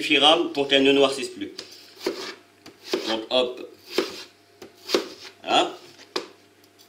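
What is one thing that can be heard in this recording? A knife taps on a plastic cutting board.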